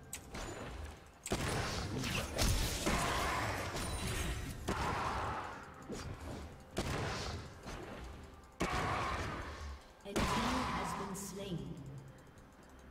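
Video game spell effects whoosh and burst in a fight.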